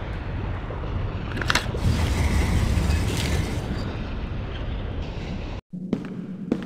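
Lava rumbles and bubbles steadily.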